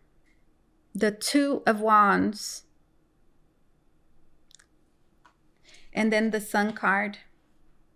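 A young woman speaks calmly and closely into a microphone, in short phrases.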